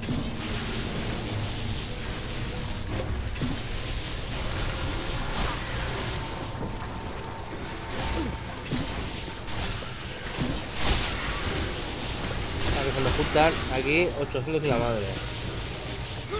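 A proton beam crackles and buzzes as it fires.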